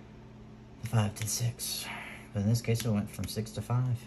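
Playing cards slide softly across a table.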